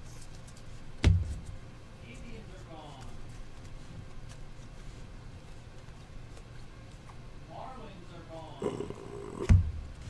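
A stack of cards knocks on a table.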